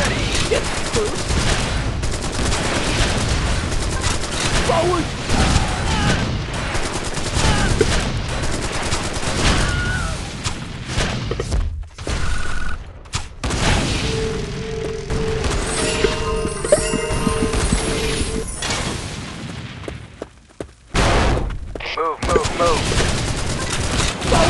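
Game battle sounds of clashing troops and blasts play throughout.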